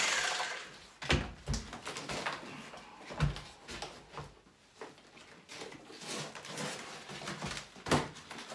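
Loose plaster knocks and crumbles as a man chips at a wall.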